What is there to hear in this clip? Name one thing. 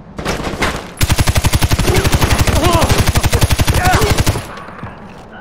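An automatic rifle fires a rapid burst.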